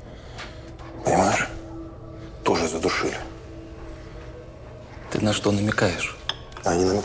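A second man speaks in a low voice, close by.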